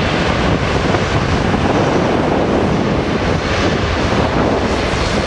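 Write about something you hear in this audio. Jet engines roar loudly as a large airliner speeds down a runway.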